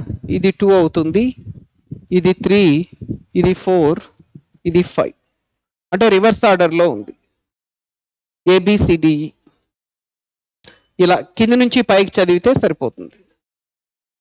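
A man speaks clearly into a microphone, explaining at a steady pace.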